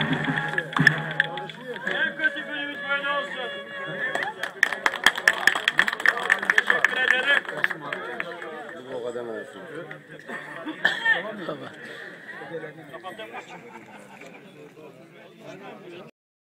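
Several men talk and call out loudly outdoors.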